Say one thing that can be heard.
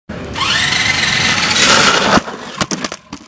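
A small electric motor of a toy car whines loudly.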